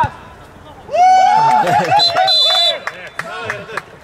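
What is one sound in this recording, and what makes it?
Men cheer loudly.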